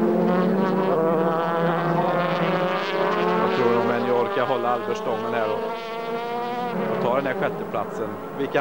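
Racing car engines roar loudly as the cars speed past, their pitch rising and falling.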